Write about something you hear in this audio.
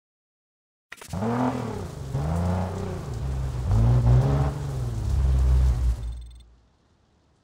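A sports car engine revs loudly, rising and falling in bursts.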